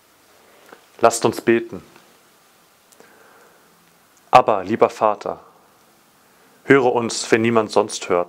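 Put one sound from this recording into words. A man speaks calmly and clearly, reading out.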